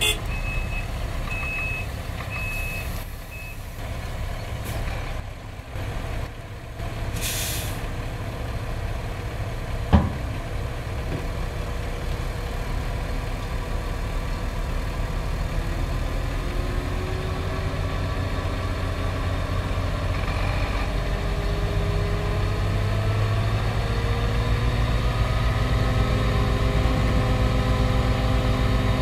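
A truck's diesel engine idles with a low, steady rumble.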